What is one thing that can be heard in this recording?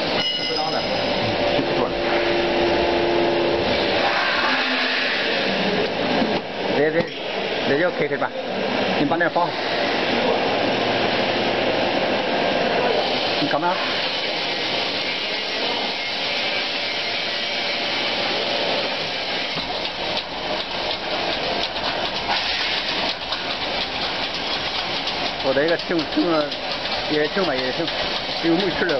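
Gas burners roar steadily inside a machine.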